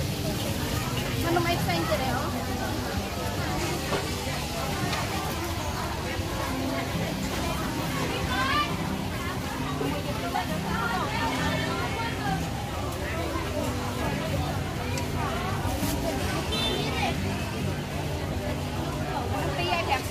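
A crowd chatters in the background of a busy outdoor market.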